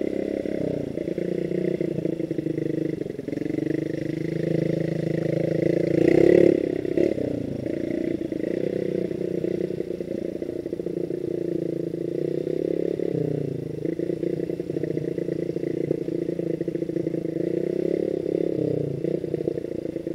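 A motorcycle engine hums and revs up close.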